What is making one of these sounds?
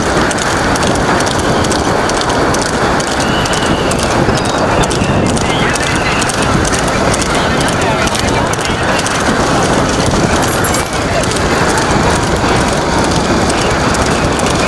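Cart wheels rumble over the road.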